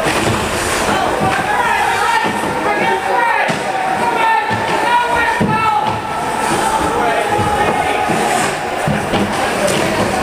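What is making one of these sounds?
Men call out across a large echoing rink.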